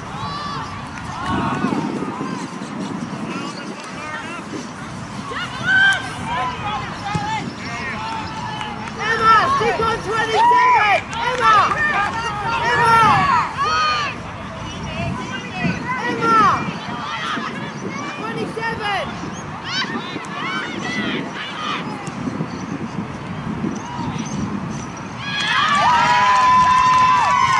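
Young women shout to each other in the distance across an open field.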